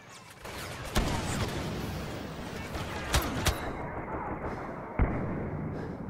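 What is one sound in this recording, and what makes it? Laser blasters fire in sharp, loud shots.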